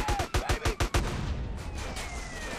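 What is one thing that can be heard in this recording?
A car explodes with a deep boom.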